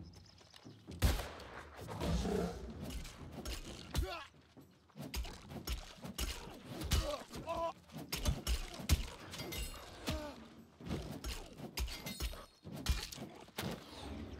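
Magic blasts crackle and burst in quick succession.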